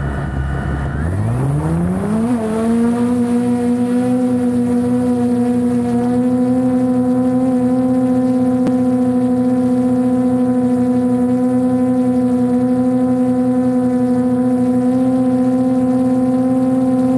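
Drone propellers spin up with a rising whine and settle into a loud, steady buzz.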